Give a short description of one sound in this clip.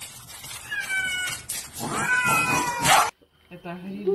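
Cats hiss and yowl as they fight.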